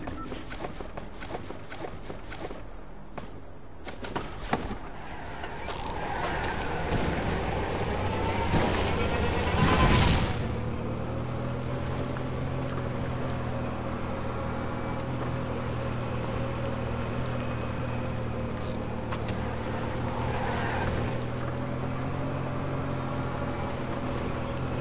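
A small cart's engine hums steadily as it drives.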